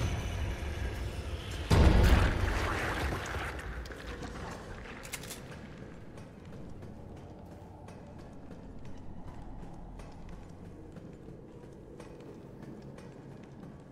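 Footsteps tap on a metal floor.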